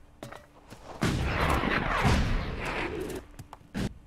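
A heavy thud sounds as a body lands after a jump.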